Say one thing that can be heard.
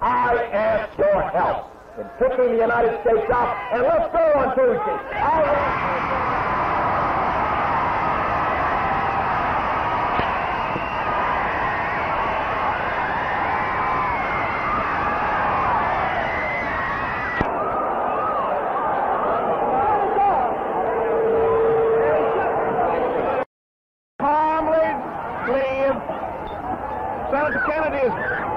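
A man speaks forcefully through a loudspeaker outdoors.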